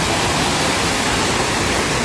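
A car drives through deep water with a rushing splash.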